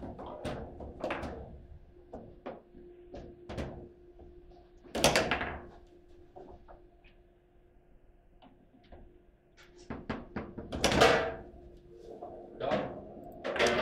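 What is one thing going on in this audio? A hard ball bangs against foosball players and the table walls.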